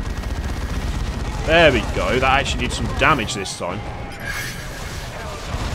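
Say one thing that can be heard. Guns fire in rapid bursts during a battle.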